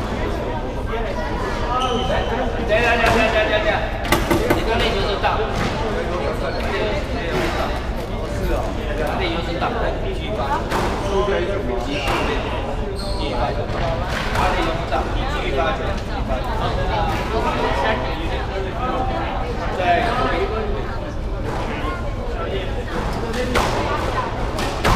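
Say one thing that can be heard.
Young girls talk in an echoing room.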